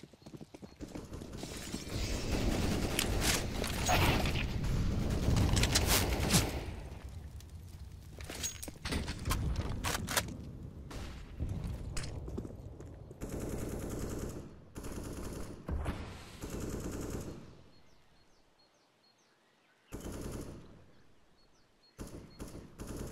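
Footsteps patter quickly across hard ground and up stairs.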